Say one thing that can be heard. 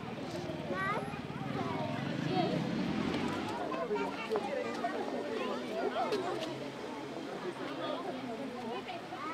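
Children call out in high voices nearby.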